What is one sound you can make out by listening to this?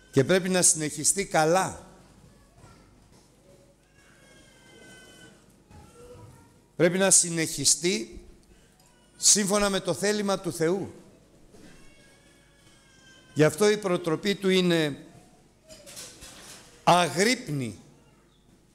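A middle-aged man speaks loudly and with animation into a microphone, in short bursts with pauses.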